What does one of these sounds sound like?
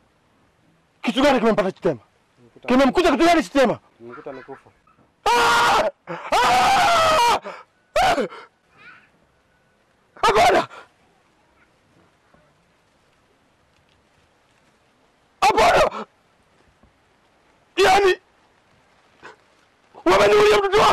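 A man speaks loudly and with feeling, close by.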